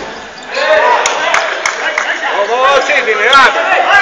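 A ball thumps as players kick it on a hard court.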